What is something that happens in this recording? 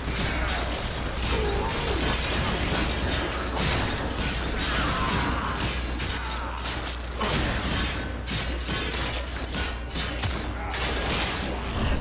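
Rapid gunfire rattles and cracks.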